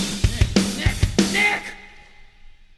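A boy sings loudly into a microphone.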